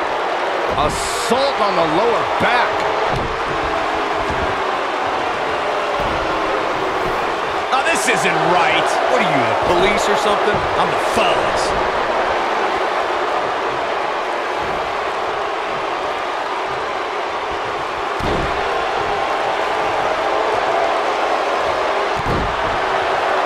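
Heavy thuds sound as wrestlers hit the mat.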